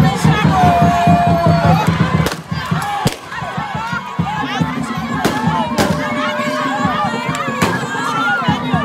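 Drums beat in a fast rhythm.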